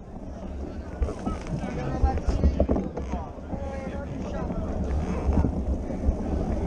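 A crowd of men and women talk and call out nearby.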